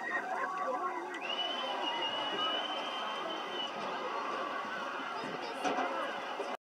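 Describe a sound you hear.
A large crowd chatters and murmurs outdoors.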